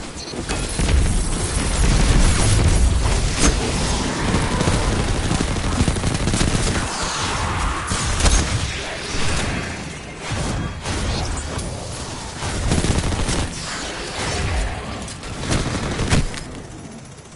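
Gunfire crackles in rapid bursts with blasts of energy weapons.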